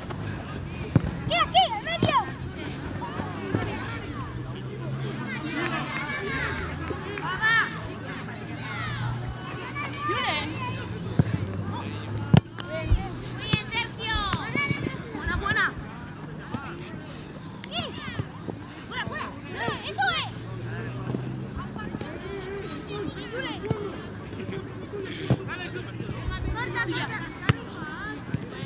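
Children shout and call out to each other across an outdoor pitch.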